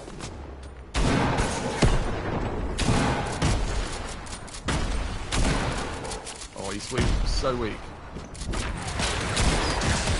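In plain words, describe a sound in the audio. Wooden ramps and walls snap into place with quick thuds.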